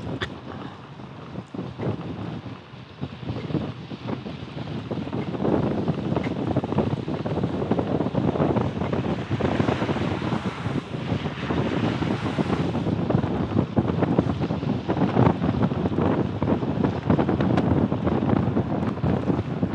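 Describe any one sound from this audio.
Wind rushes and buffets outdoors, growing louder.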